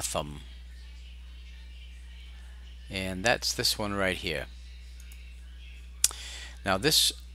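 A man speaks calmly into a headset microphone, heard close up.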